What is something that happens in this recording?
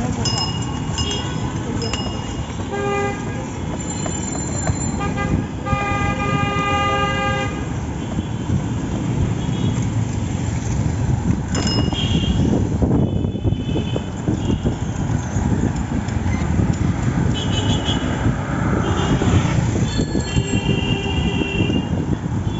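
Motor traffic rumbles nearby.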